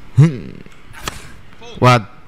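A racket strikes a tennis ball with a sharp pop.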